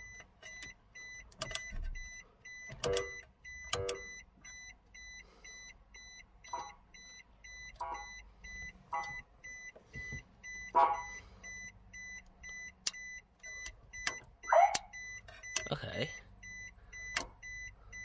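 Switches click sharply now and then.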